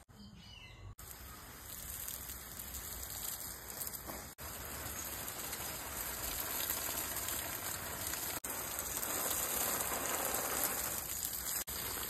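Water sprays outdoors with a steady hiss.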